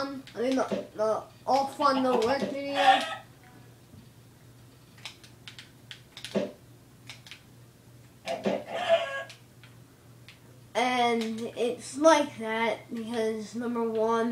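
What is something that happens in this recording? Soft video game clicks and thuds play from a television.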